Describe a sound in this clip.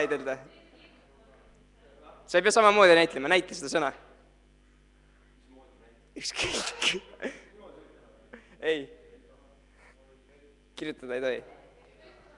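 A young man sings in short phrases into a microphone, heard through a loudspeaker in a reverberant room.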